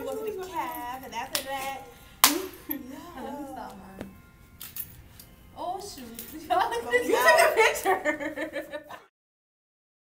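Young women talk and laugh with animation close by.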